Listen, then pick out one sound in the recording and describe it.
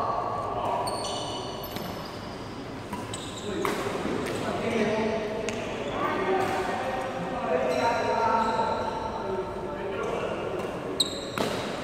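Sneakers squeak on a sports floor.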